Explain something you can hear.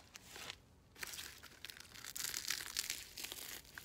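Dry soil pours and rustles out of a pot.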